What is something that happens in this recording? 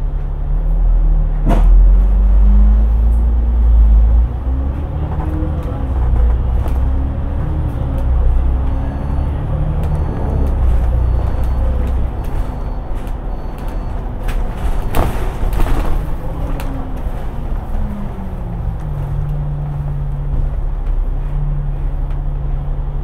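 A bus engine hums and rumbles steadily, changing pitch as it speeds up and slows down.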